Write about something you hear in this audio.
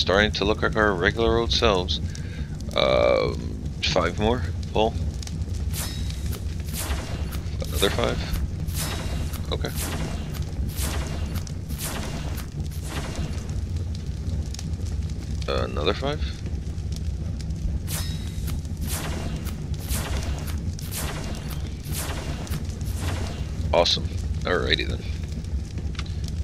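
Short interface clicks sound again and again.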